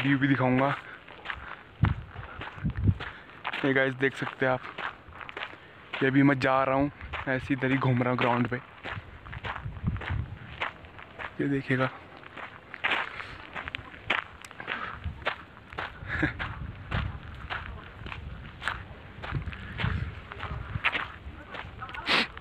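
A young man talks close to the microphone.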